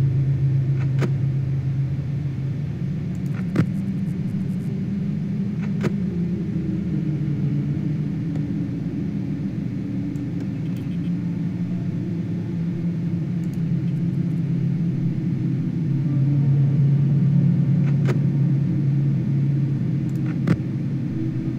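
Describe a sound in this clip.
Sharp clicks sound now and then as a monitor switches on and off.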